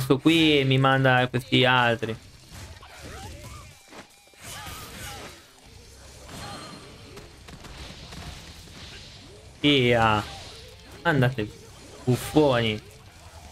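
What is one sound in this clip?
Blows and slashes land with sharp hits during a fight.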